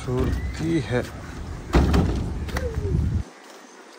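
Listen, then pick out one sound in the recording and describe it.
A child's footsteps tap on a wooden boardwalk.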